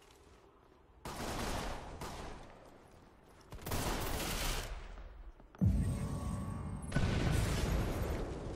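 Gunfire rings out in loud bursts.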